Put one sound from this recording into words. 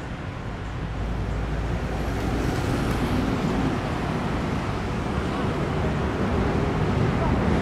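A bus engine rumbles as it passes close by.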